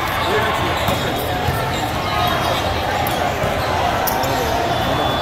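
A crowd murmurs and chatters throughout a large echoing hall.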